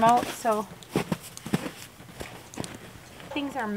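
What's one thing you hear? Boots crunch on snow.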